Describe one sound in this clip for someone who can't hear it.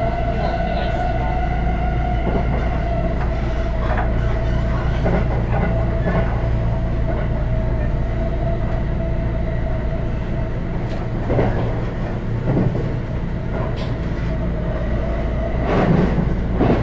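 A train's motor whines with a steady tone.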